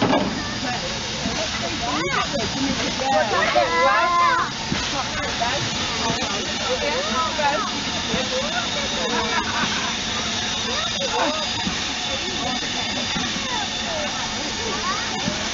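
A steam locomotive hisses steadily nearby.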